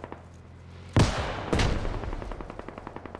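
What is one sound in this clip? A smoke grenade bursts with a loud bang and hisses.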